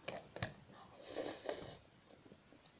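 A young woman slurps noodles loudly.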